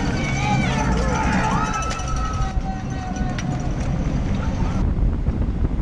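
A crowd of spectators cheers and shouts from the roadside.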